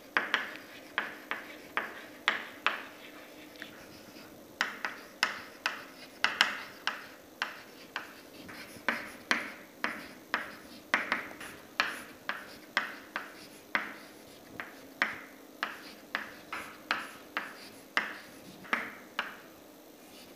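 Chalk taps and scrapes sharply on a board at a quick, uneven pace.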